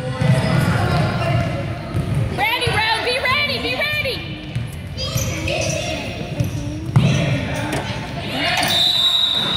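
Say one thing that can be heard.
Children shout and call out during play.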